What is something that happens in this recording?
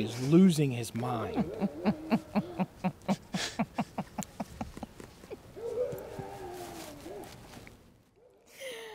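A man laughs heartily close by.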